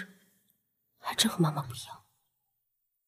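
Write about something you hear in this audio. A young man speaks softly and close by.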